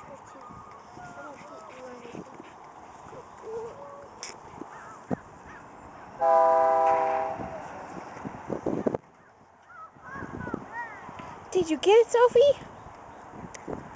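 A dog digs, scratching and scattering loose soil.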